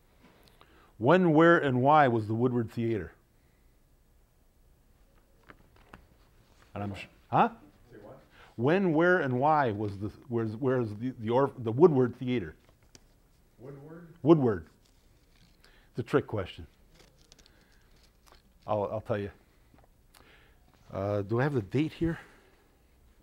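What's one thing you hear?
An older man speaks with animation through a microphone, in short bursts with pauses.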